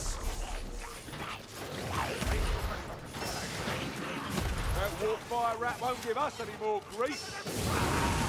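A rifle fires with loud bangs.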